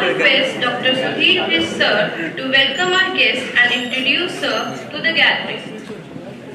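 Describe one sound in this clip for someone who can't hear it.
A woman speaks into a microphone over loudspeakers in a large hall.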